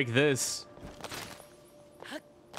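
Ice shatters with a sharp, glassy crash.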